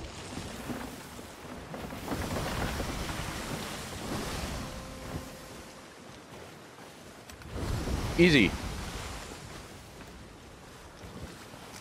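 Stormy sea waves rush and crash.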